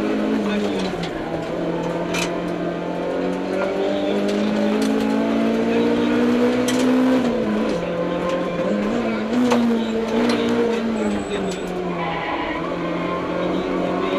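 A man reads out notes quickly through a helmet intercom.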